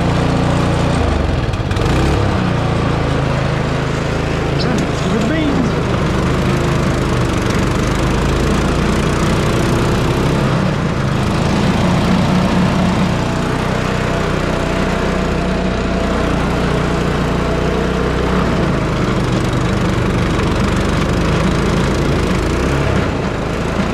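A snow blower engine roars steadily close by.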